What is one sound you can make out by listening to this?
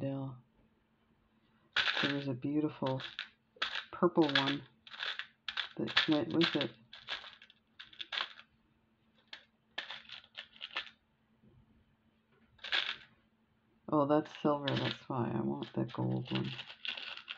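Small beads clink softly as a hand handles them.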